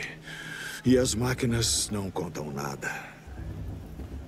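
A man speaks gruffly and firmly.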